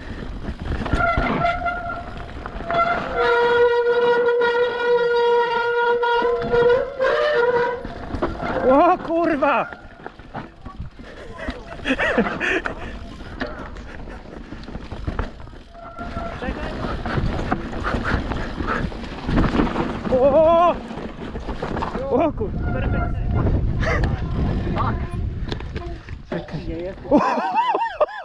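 A bike's frame and chain rattle over bumps.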